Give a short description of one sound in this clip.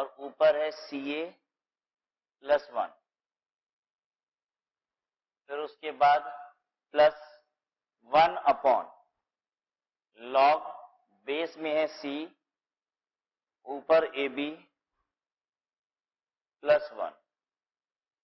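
A man speaks calmly in short phrases, with pauses, close to a microphone.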